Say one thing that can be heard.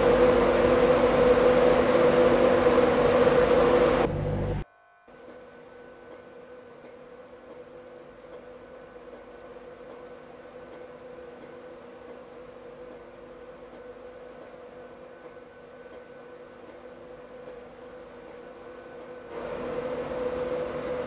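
A diesel train engine idles with a steady droning hum.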